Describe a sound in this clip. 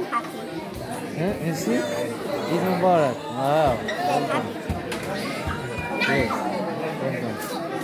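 A young girl laughs and talks close by.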